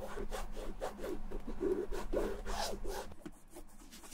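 Fingers rub and tap on stiff leather.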